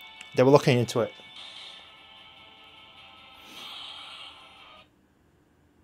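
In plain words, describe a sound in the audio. Electronic game music plays from a small speaker.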